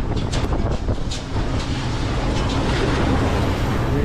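Waves splash hard against a metal hull.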